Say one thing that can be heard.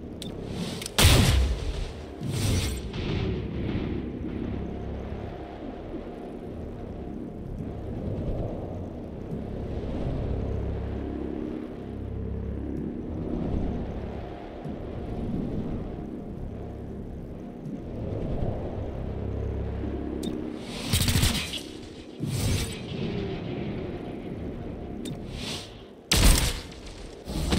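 Gunshots bang sharply a few times.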